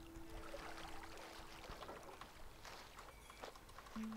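Water sloshes softly in a bathtub.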